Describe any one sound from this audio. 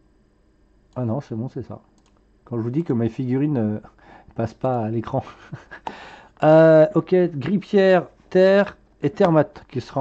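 A man talks calmly and close to a microphone.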